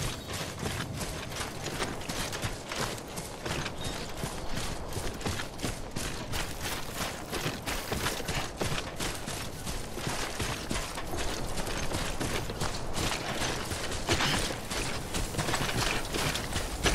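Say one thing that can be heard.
Footsteps crunch steadily on grass and gravel.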